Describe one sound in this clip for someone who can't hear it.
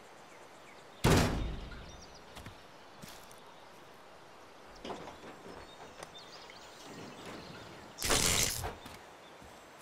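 A heavy battery thuds down onto metal.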